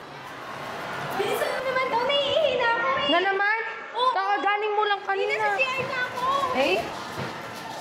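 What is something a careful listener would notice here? A young woman speaks with a complaining tone close by.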